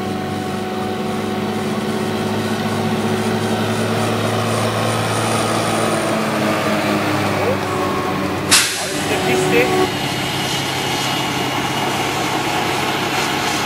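A tractor engine rumbles nearby.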